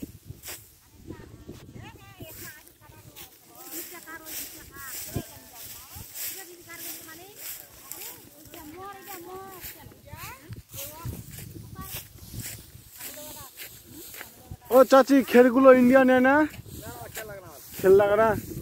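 A young man talks close to a phone's microphone, outdoors.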